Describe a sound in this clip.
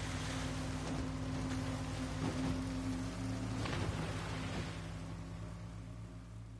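Choppy waves slap and splash against a boat's hull.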